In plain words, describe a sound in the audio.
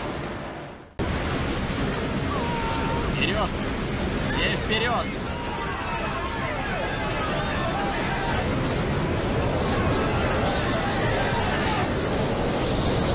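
A large crowd shouts and clamours.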